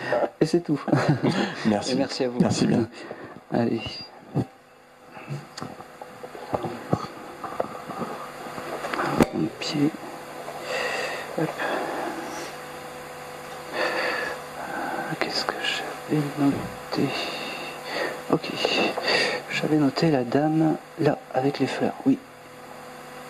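A man speaks calmly into a microphone, heard through a loudspeaker in an echoing room.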